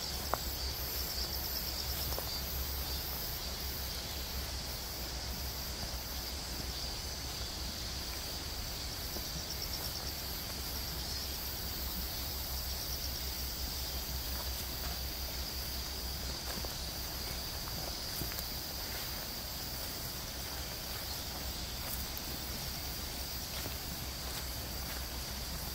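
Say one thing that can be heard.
A walking stick taps softly on the ground.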